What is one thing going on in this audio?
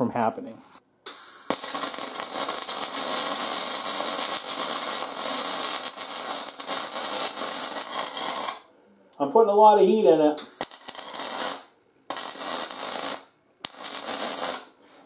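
A welding arc crackles and hisses in steady bursts.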